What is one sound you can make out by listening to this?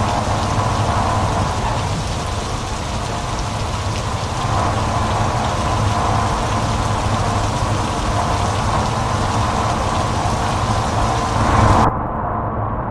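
Rain hisses loudly on a wet road.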